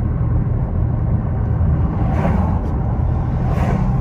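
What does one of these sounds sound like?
An oncoming car passes by.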